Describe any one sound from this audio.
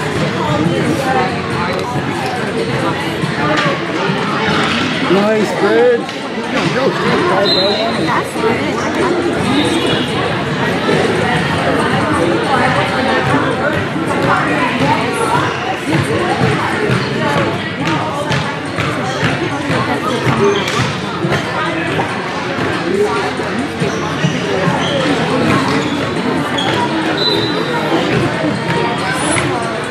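Young women shout and call to each other in a large echoing hall.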